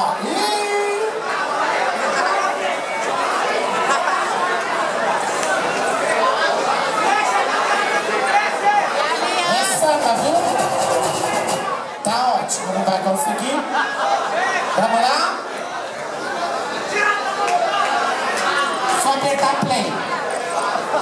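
A woman speaks with animation through a microphone over loudspeakers in a large hall.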